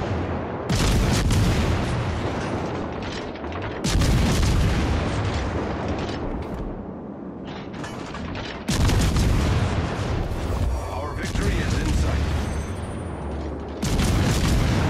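Heavy naval guns fire in loud booming salvos.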